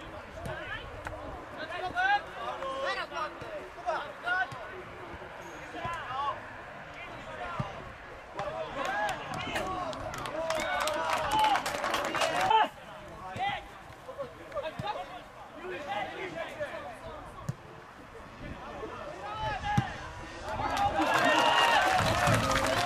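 Young men shout and call out to each other across an open pitch outdoors.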